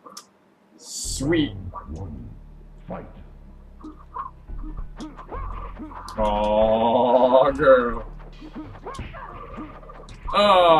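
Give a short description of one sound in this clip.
Video game fight sounds play.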